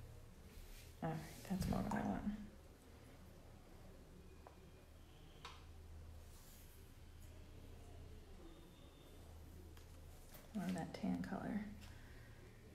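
Paper rustles as a sheet is moved on a table.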